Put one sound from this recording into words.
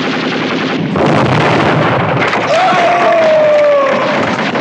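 An explosion blasts.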